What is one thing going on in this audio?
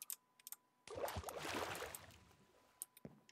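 Water splashes as something wades out of it.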